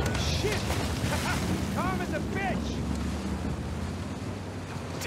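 A large explosion roars and rumbles.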